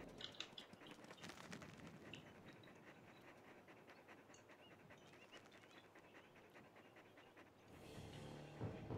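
Wolves snarl and growl while fighting.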